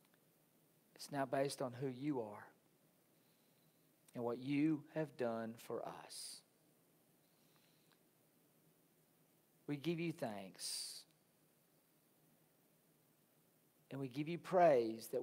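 A middle-aged man speaks calmly into a microphone, in short phrases with pauses, in a slightly echoing room.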